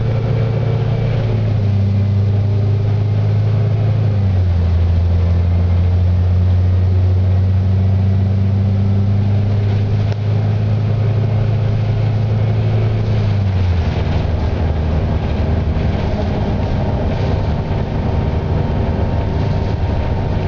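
The bus interior rattles and creaks over the road.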